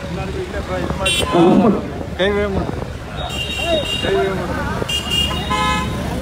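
Vehicle horns honk several times.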